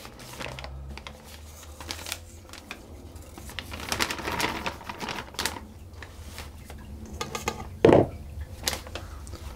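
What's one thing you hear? A plastic piping bag rustles and crinkles.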